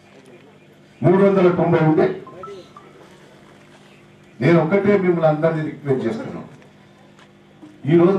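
A middle-aged man speaks loudly into a microphone in bursts with pauses.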